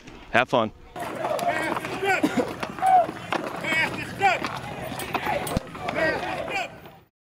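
Football players shout and cheer as they walk in a group.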